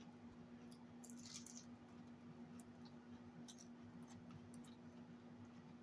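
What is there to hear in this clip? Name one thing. A fork scrapes and clicks against a plate.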